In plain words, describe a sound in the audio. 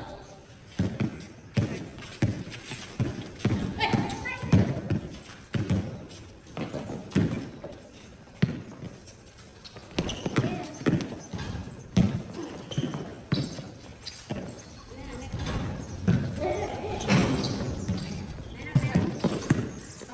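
Children shout and call out to each other outdoors.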